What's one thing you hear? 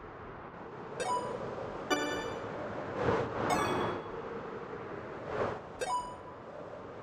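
A bright chime rings several times.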